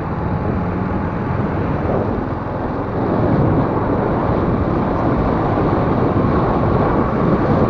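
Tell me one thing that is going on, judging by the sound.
A motorbike engine hums steadily.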